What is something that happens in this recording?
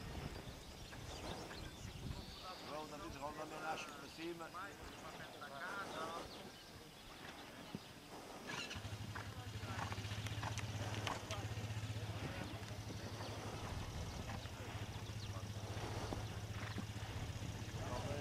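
A horse trots with soft, muffled hoofbeats on sand.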